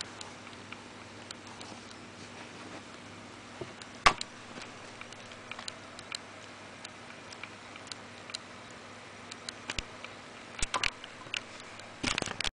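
Hands handle a small plastic device with soft clicks and knocks.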